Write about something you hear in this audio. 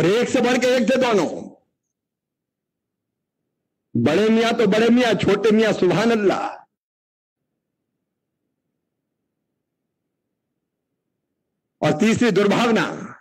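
A middle-aged man speaks loudly and forcefully into a microphone, in bursts with pauses.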